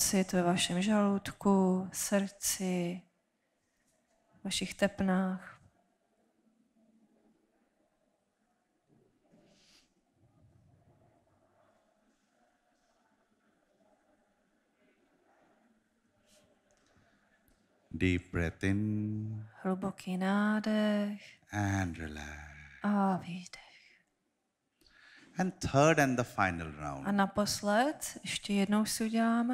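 A man speaks calmly into a microphone, heard through loudspeakers, pausing between phrases.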